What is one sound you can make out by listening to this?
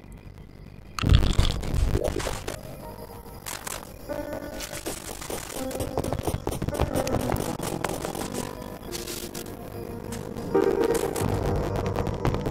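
Electronic video game music plays.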